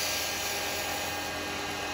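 A chisel scrapes against spinning wood.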